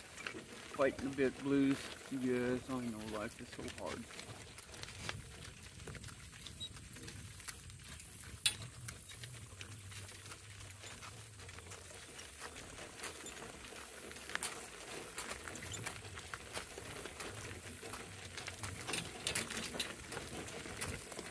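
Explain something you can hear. Cart wheels crunch over gravel.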